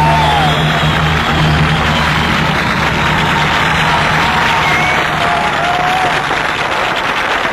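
A rock band plays loudly through loudspeakers.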